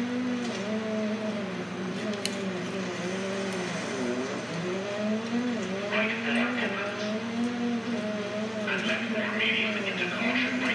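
A rally car engine revs high and shifts up and down through the gears.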